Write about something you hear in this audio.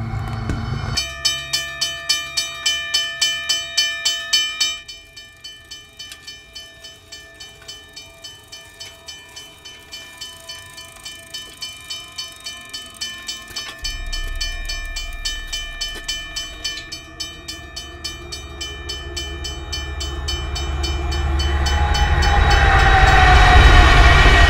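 A crossing bell rings rapidly and steadily.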